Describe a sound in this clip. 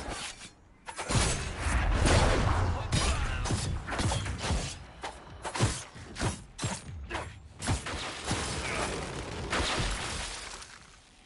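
Sword blows and magic blasts crack and whoosh in quick succession.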